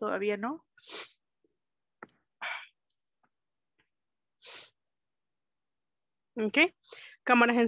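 A young woman speaks in short bursts over an online call.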